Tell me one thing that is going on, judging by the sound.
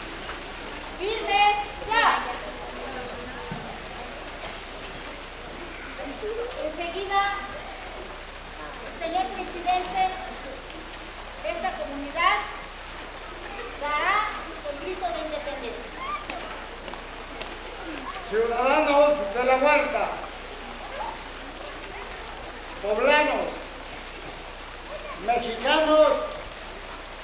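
A man calls out loudly in short bursts through a loudspeaker.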